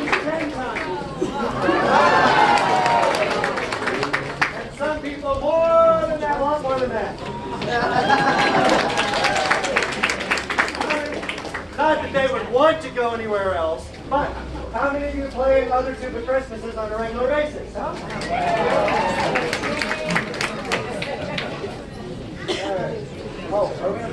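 A brass band plays a lively tune.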